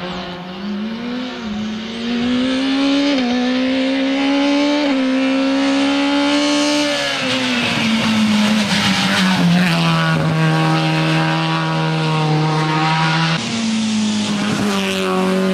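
A rally car engine roars as the car approaches and passes, rising and dropping in pitch with each gear change.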